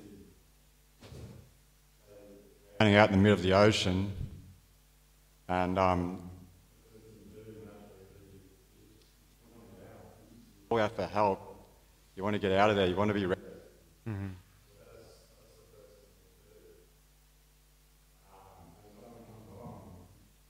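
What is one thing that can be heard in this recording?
A young man speaks calmly into a microphone, in bursts with pauses.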